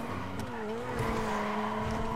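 Tyres screech as a car turns sharply.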